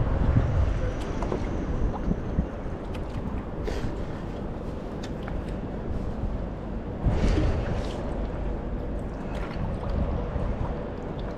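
A paddle dips and splashes in the water.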